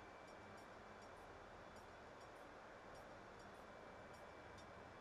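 A steady airliner engine and air hum drones throughout.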